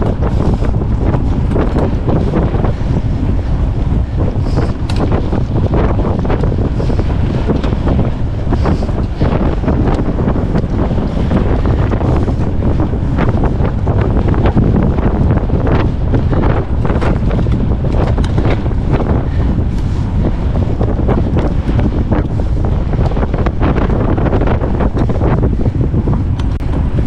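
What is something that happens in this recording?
Fat bicycle tyres crunch and hum over packed snow.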